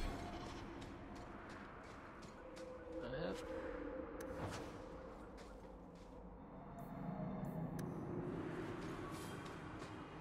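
Footsteps crunch on a rocky path.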